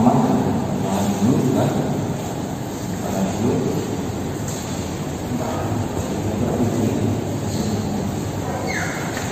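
A man speaks calmly in an echoing empty room.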